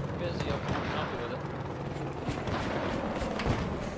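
A helicopter drones overhead.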